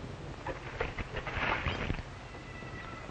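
Water splashes onto hot embers and hisses.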